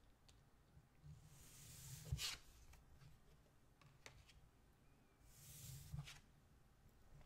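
Playing cards slide softly across a wooden table.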